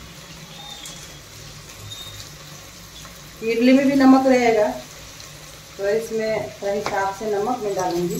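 A wooden spoon scrapes and stirs inside a metal pot.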